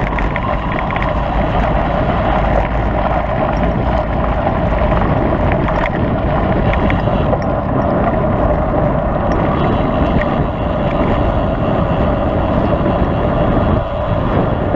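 Tyres roll and rattle over a rough road.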